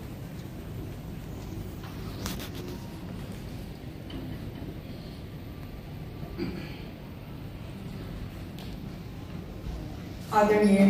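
A crowd murmurs quietly.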